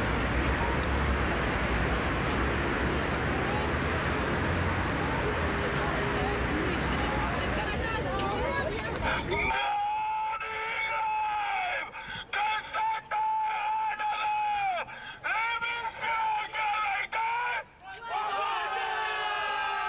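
A man speaks loudly through a megaphone.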